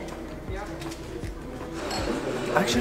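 A man takes a sip from a glass.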